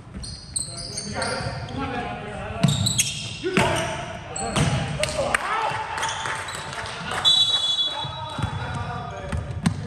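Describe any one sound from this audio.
The sounds echo in a large hall.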